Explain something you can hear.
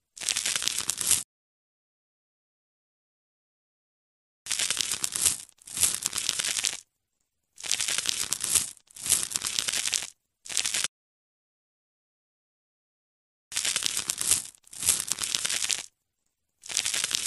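A knife scrapes over a rough surface in short rasping bursts.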